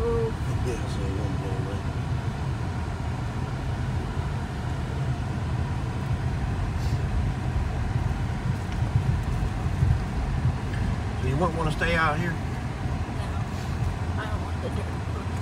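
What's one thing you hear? A car engine hums and tyres rumble on a dirt road from inside the car.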